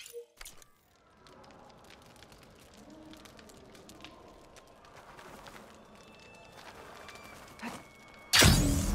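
Footsteps scrape on rock.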